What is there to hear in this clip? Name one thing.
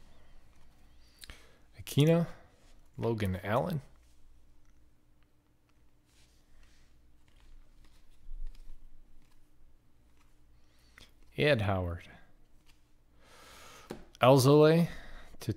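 Trading cards softly flick and rustle as they are leafed through by hand.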